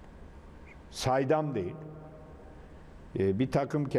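An elderly man speaks calmly with animation into a microphone.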